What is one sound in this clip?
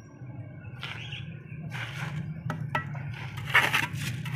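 A trowel scrapes wet cement.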